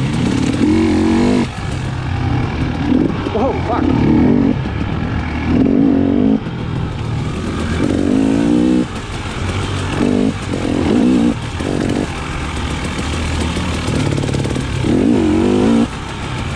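A dirt bike engine revs up and down throughout.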